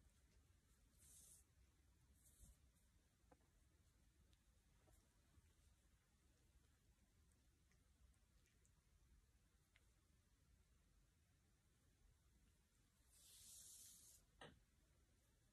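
Yarn and fabric rustle softly.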